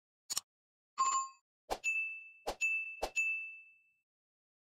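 A bell chimes brightly.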